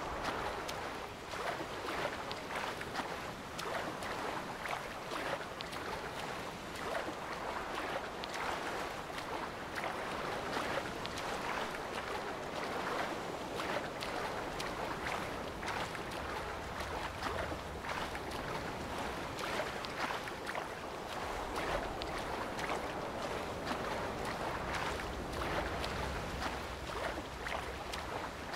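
Waves slosh and lap all around.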